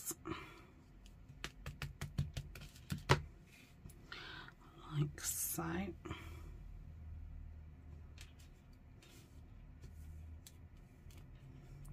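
Fingers tap and pat on a table.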